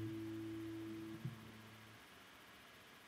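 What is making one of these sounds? A man hums a steady low note into a microphone, then stops.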